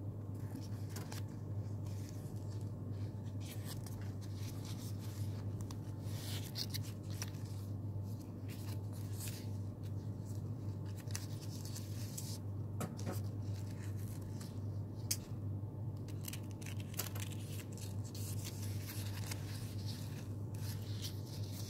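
Paper rustles and crinkles softly as it is folded by hand.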